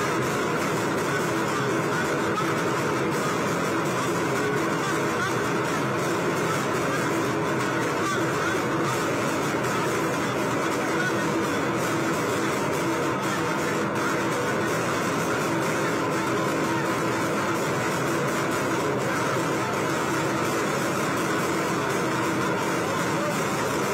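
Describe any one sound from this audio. Drums beat rapidly among the crowd.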